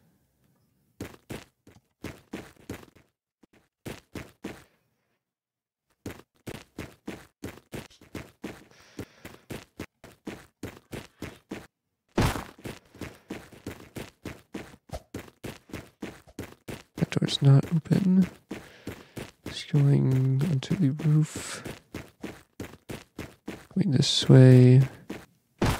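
Quick footsteps thud steadily on a hard floor.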